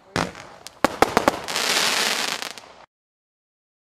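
Fireworks crackle and fizz after bursting.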